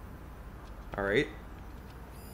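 An electronic chime sweeps quickly upward.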